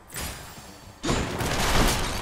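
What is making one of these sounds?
A magical blast bursts with a loud whoosh.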